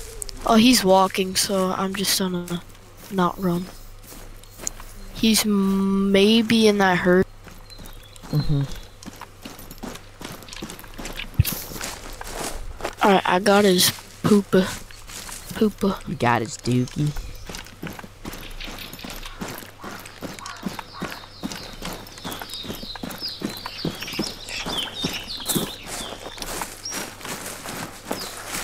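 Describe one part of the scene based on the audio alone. Footsteps crunch through dry leaves and undergrowth.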